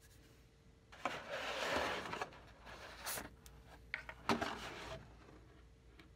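Dry cereal pours and rattles into a glass bowl.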